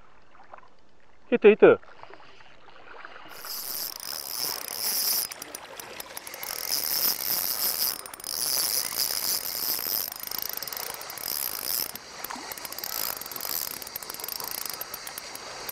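A fishing reel whirs as its handle is cranked close by.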